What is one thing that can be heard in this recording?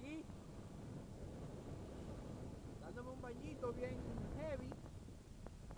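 Small waves lap and splash against the shore.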